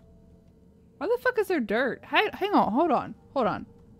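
A young woman speaks with animation into a close microphone, her voice rising and falling in pitch.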